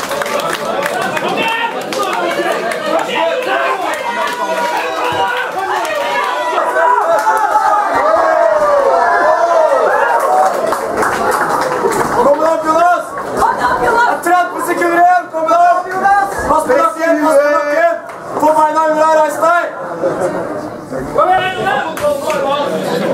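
A crowd shouts and cheers.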